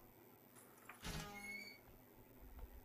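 A metal cabinet door creaks open.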